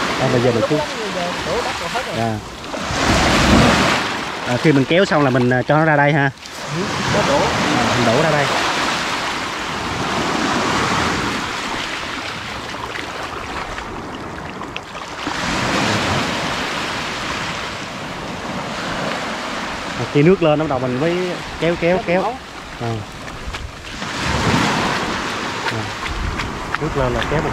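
Small waves wash onto the shore.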